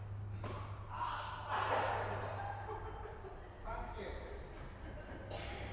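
A tennis ball is struck with a sharp pop in a large echoing hall.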